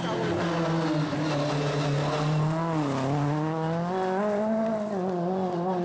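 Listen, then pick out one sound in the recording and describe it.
A rally car engine revs loudly, its pitch rising and falling as the car drives past.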